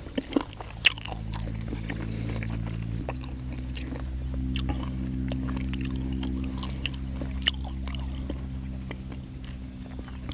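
A fork scrapes and clinks against a plate.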